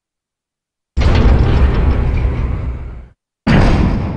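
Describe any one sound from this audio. Heavy metal elevator doors rumble and grind open.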